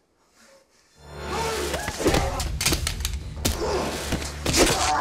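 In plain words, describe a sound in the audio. A loud scuffle breaks out with thuds and crashes.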